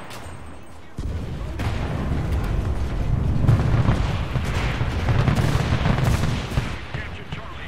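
An explosion booms nearby and rumbles.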